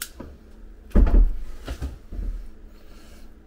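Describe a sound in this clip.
A cable-stripping tool clicks and crunches on a cable.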